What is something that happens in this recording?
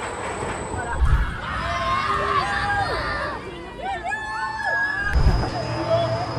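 Riders scream on a spinning ride.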